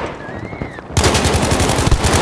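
A machine gun fires in rapid bursts, loud and close.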